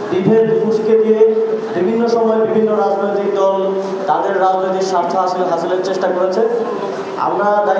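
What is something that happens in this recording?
A young man speaks with animation into a microphone, heard through a loudspeaker.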